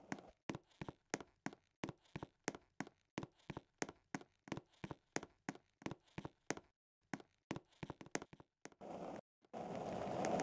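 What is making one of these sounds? Footsteps tap quickly and evenly on a hard floor.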